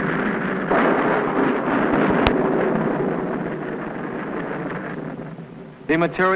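A rocket engine roars loudly as it lifts off, then fades.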